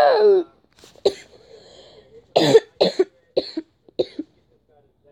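A boy laughs loudly.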